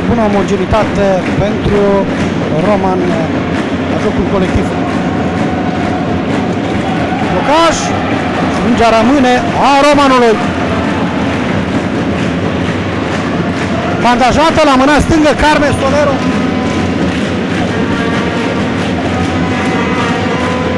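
A handball bounces on a wooden floor.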